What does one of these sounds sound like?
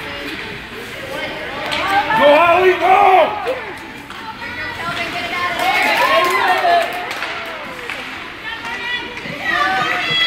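Ice hockey skates scrape and carve on ice.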